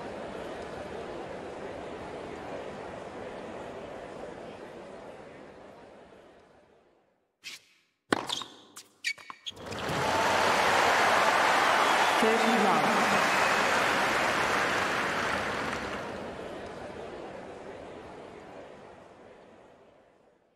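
A crowd murmurs and applauds.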